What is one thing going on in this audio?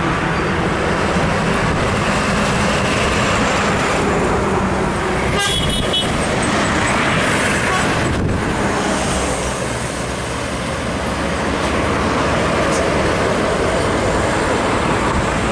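Heavy traffic rumbles steadily along a road outdoors.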